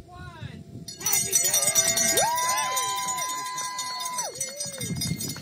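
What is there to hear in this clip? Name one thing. A crowd cheers and whoops outdoors.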